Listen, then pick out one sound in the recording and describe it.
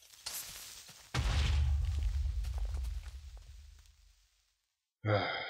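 A video game explosion booms and rumbles away.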